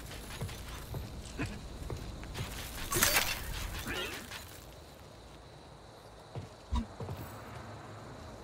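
Footsteps tread on a metal floor.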